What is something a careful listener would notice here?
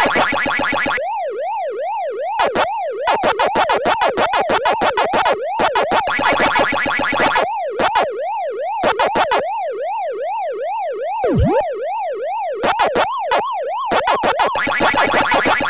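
A warbling electronic tone sounds in bursts.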